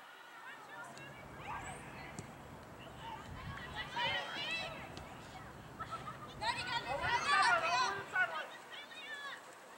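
Young women shout and call out to each other outdoors across an open field.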